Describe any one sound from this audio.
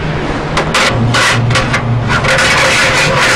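Coins clink and rattle into a fare machine.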